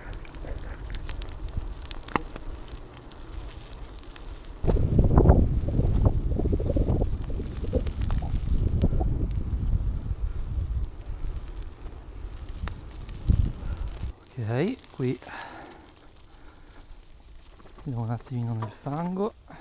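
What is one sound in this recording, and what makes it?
Bicycle tyres crunch and rattle over a gravel track.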